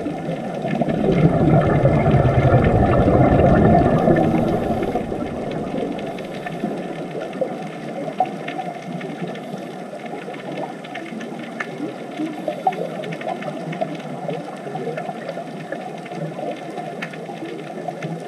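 Bubbles from divers' breathing gear gurgle and rumble underwater.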